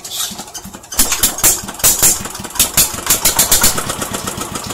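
A small engine sputters briefly.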